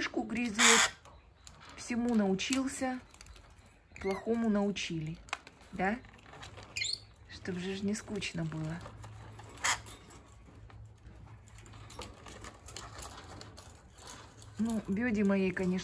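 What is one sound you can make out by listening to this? A parrot squawks and chatters in short bursts close by.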